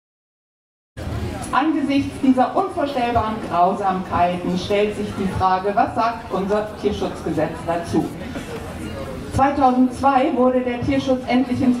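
A middle-aged woman speaks steadily into a microphone, heard through loudspeakers outdoors.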